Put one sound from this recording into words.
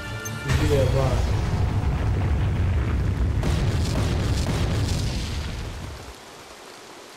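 A loud rumbling crash of collapsing stone roars and then fades.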